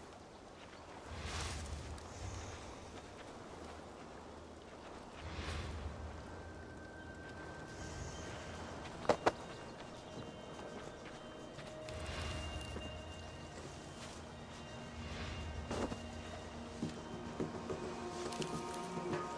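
Footsteps rustle slowly through leafy plants.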